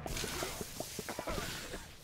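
A video game weapon fires with splattering effects.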